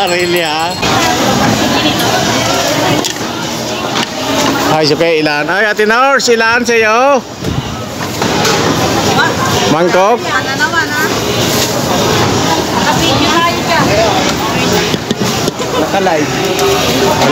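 Many people talk all around in a busy, crowded indoor space.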